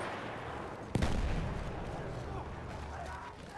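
A loud explosion booms close by, with a rumbling tail.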